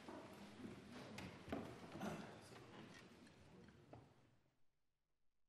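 A crowd of men and women murmurs quietly in a large echoing hall.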